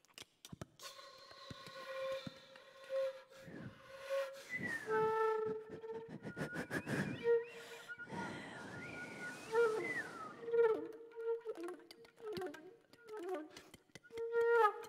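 A flute plays a melody with gliding, trilling notes.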